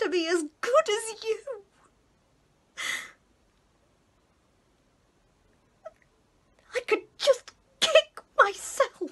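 A woman speaks emotionally close to a microphone, pausing between phrases.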